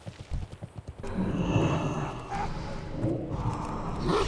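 Magic spells whoosh and crackle in a loud fight.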